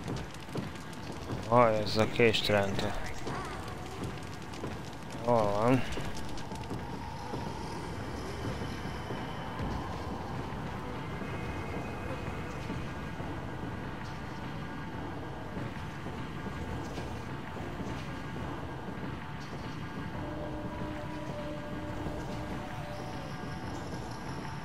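Footsteps thud on a wooden floor and stairs.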